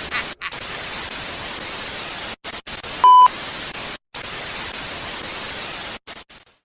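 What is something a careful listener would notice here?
Television static hisses loudly, cutting in and out.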